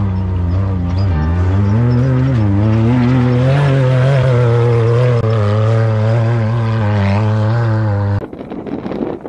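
An off-road buggy engine roars and revs while climbing.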